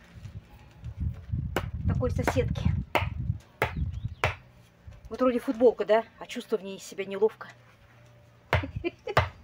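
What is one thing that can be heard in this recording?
A hoe chops into soil with dull thuds.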